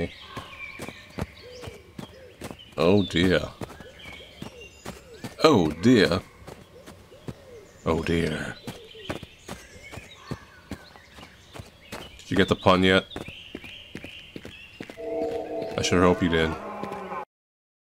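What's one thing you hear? Footsteps crunch through snow at a steady walking pace.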